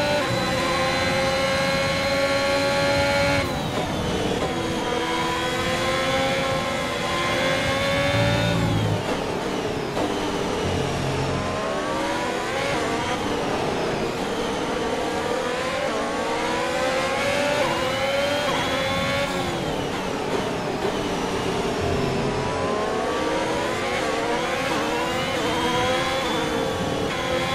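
A racing car engine screams at high revs, rising and falling as gears shift.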